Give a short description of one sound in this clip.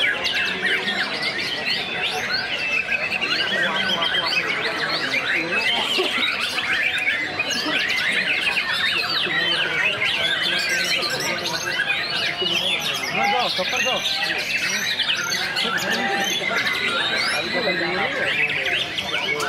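A small songbird sings loudly in fast, chirping trills.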